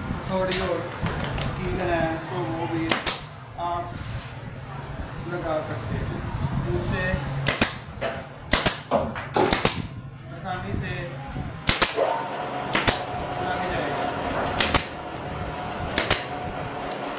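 A pneumatic staple gun fires with sharp, repeated snaps.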